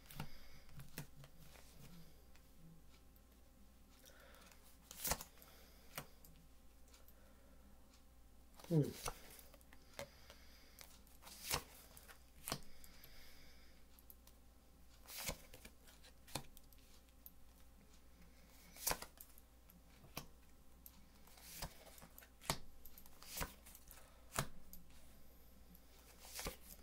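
Small objects click and tap close by as hands handle them.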